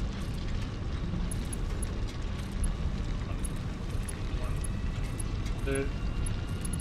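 Machines hum and rumble steadily.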